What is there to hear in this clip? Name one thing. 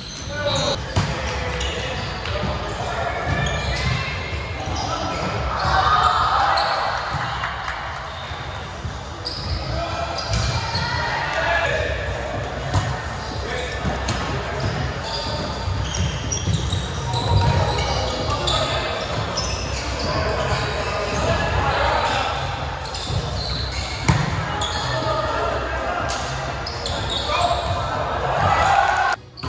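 Young men and women shout and call out to each other in a large echoing hall.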